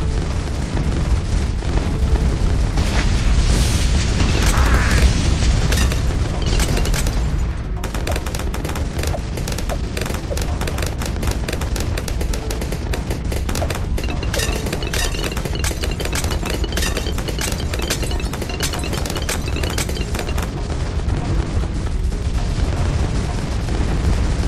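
Game weapons fire with quick popping shots.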